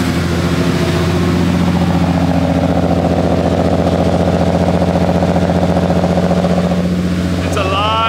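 An exhaust rumbles loudly at idle.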